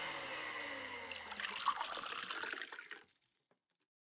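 Juice pours into a glass.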